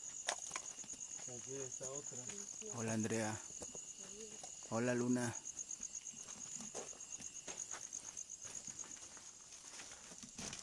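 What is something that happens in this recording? Insects chirp steadily outdoors at night.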